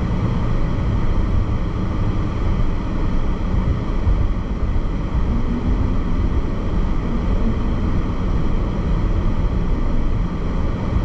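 A car engine hums steadily with tyre and road noise from inside the car.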